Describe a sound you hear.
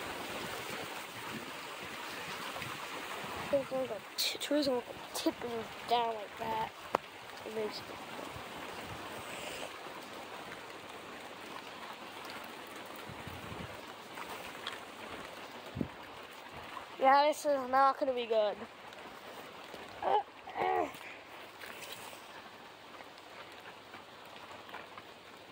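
Strong wind roars through swaying trees outdoors.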